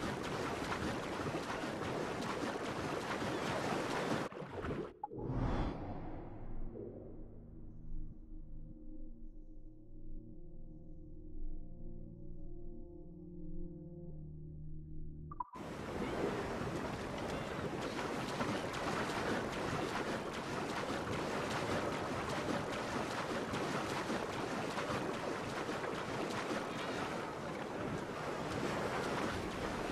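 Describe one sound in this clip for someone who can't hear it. Water splashes steadily as a swimmer strokes through waves.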